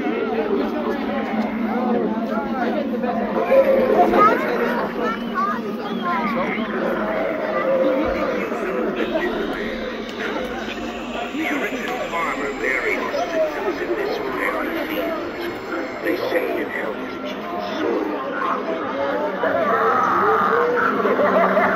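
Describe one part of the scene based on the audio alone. A crowd of adults and children chatter and talk nearby outdoors.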